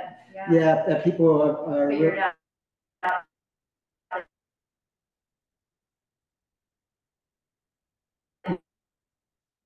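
A man speaks over an online call, with short pauses.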